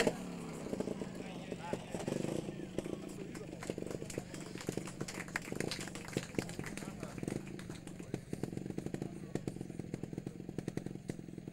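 A trials motorcycle engine idles and blips with a low, popping putter.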